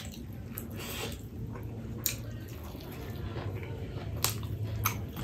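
Food squelches and crackles as fingers pick through it.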